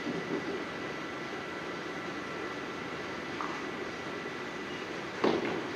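Bowling balls rumble down wooden lanes in a large echoing hall.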